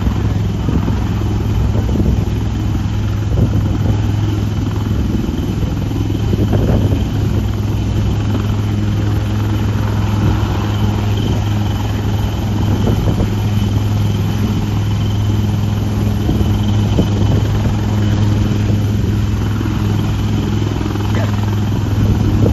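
A helicopter's engine roars and its rotor thuds steadily close by.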